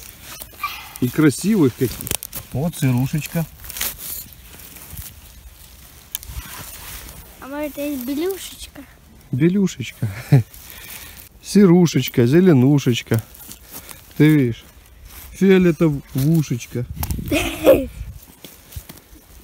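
Dry pine needles rustle underfoot.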